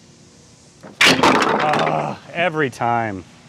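Wooden blocks clatter and crash down onto a table and floor.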